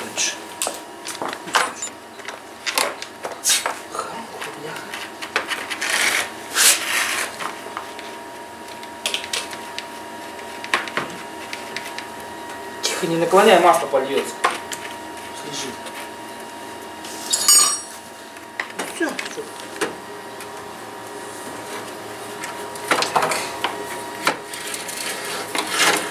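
Metal parts clank and rattle as they are handled.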